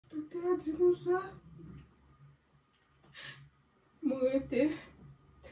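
A child speaks nearby in a high, emotional voice.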